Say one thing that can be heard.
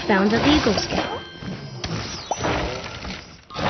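A bright game chime rings as an item is collected.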